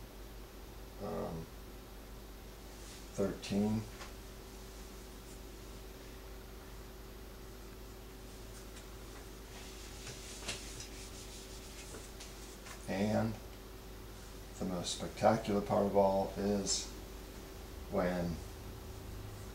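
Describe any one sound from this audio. A man speaks calmly close by, in short bursts with pauses.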